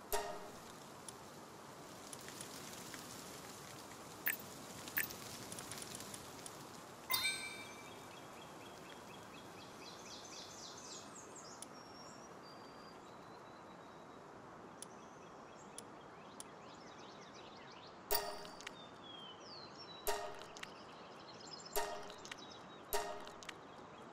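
Game menu buttons click sharply now and then.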